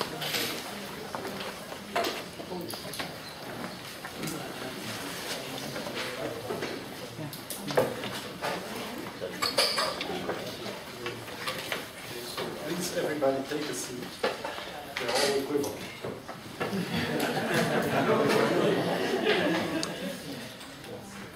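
A man speaks calmly to an audience, heard over a microphone in a room with some echo.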